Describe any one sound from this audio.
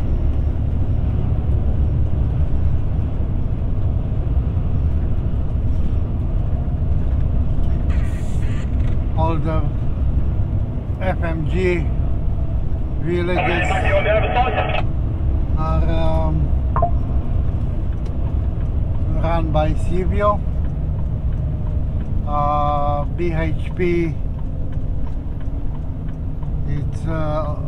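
A vehicle's engine hums steadily with road and wind noise as it drives along a highway.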